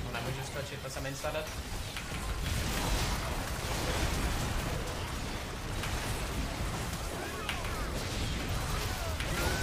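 Game spells and attacks crackle and boom in a fast fight.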